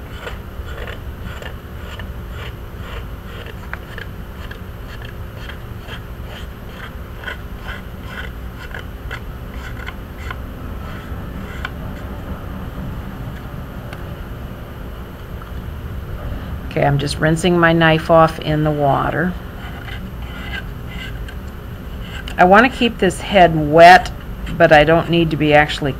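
A metal tool scrapes softly against clay.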